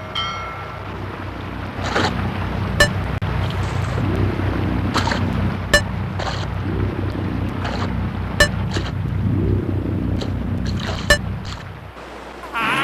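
Water churns and gurgles in a swirling whirlpool.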